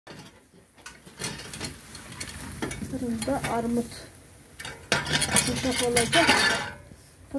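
A metal rake scrapes and rolls pears across a stone floor.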